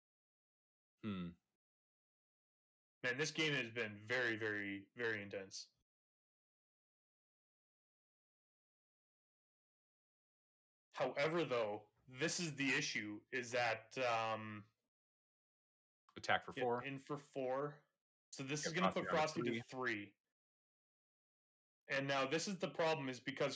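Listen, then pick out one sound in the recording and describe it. A young man talks with animation through a microphone, in bursts with pauses.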